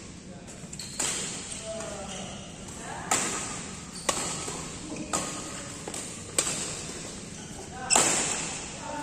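Rackets smack a shuttlecock back and forth in an echoing hall.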